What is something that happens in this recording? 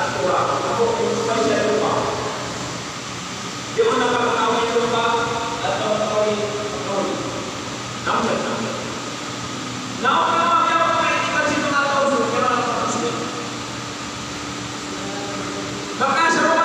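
A middle-aged man speaks calmly into a microphone, heard through a loudspeaker in an echoing hall.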